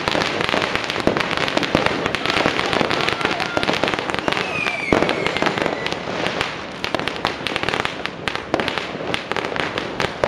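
Firecrackers sputter and pop on a street nearby.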